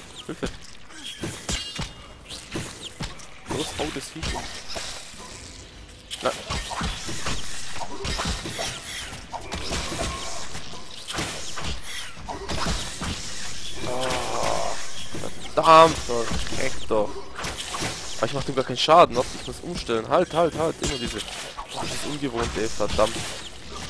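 A sword swings and strikes repeatedly.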